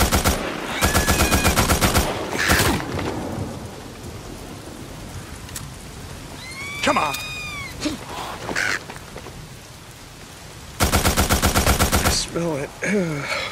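Crows caw and flap overhead.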